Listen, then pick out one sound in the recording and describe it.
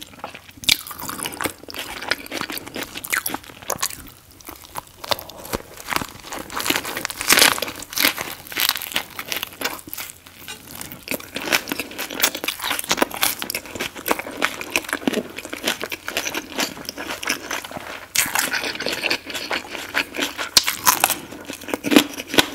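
A woman chews loudly with wet smacking sounds close to a microphone.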